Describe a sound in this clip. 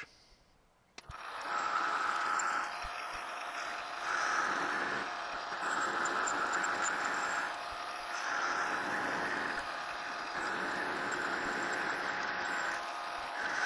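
A lathe motor runs with a steady whirring hum.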